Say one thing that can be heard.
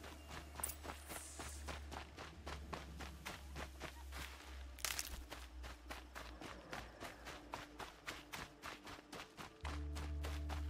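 Quick footsteps run over dry grass and gravel.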